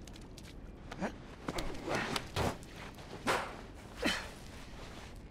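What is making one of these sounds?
Shoes scrape and thud against a wall as someone climbs up.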